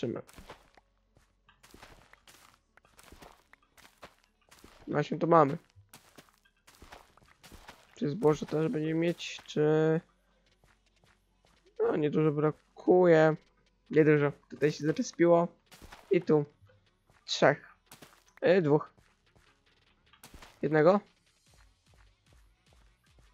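Game blocks break with short crunching pops.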